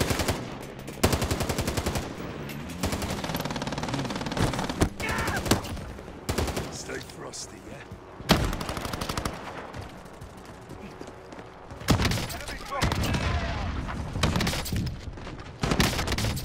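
Rapid gunfire bursts ring out close by.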